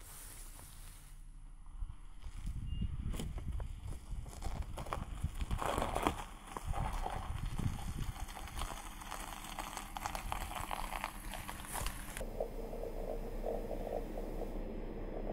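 A car engine hums as the car drives slowly over snow.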